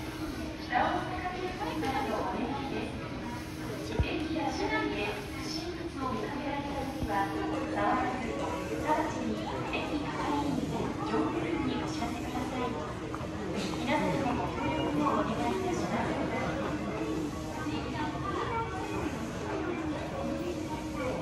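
A standing train hums steadily.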